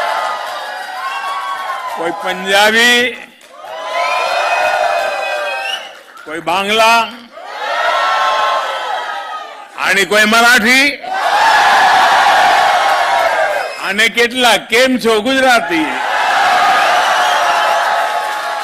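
A large crowd cheers and applauds.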